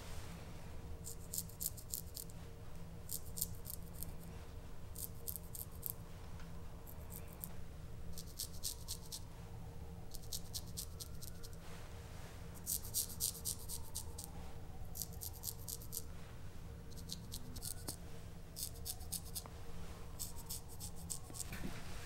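A straight razor scrapes across stubble in short, repeated strokes.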